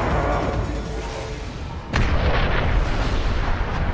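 Water rushes and roars in powerful jets.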